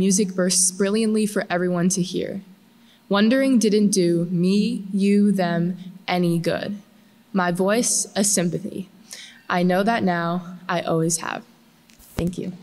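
A young woman reads aloud calmly through a microphone in a large echoing hall.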